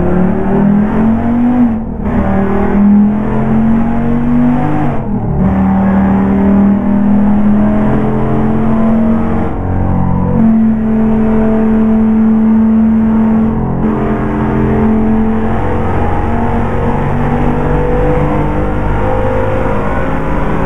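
A car engine hums steadily, dropping in pitch briefly between gear shifts.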